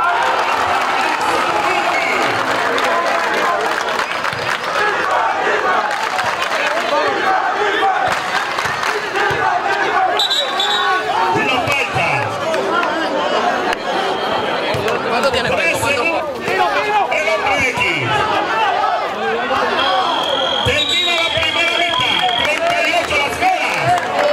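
A large crowd cheers and chatters loudly throughout.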